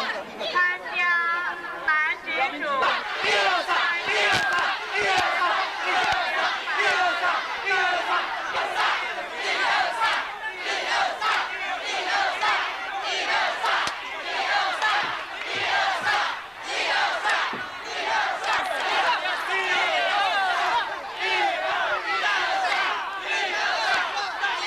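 Young men and women shout encouragement close by.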